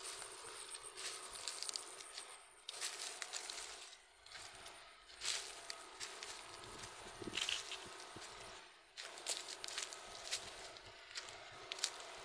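Footsteps crunch on dry soil and twigs.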